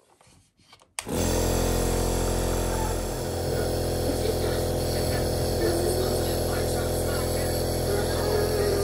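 A compressor motor hums steadily and loudly close by.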